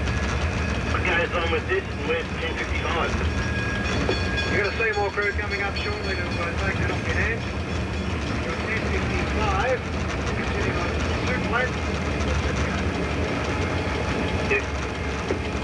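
Wheels squeal and clatter over points.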